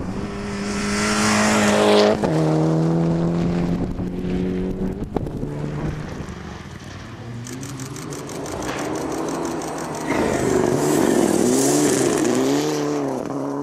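Gravel sprays and rattles as a rally car slides through a bend.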